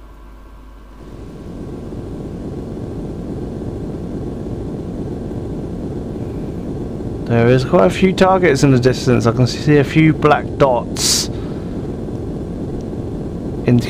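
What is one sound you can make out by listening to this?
A missile's rocket motor roars steadily as it flies.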